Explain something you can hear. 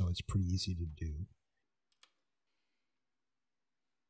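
A cable connector clicks into place.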